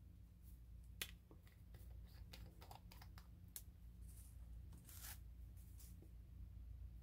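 A small plastic cap clicks and twists as a bottle is opened.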